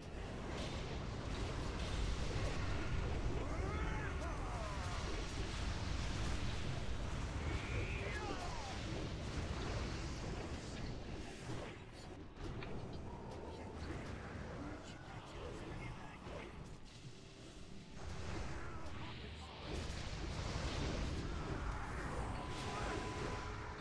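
Magic spells crackle and weapons clash in a game battle.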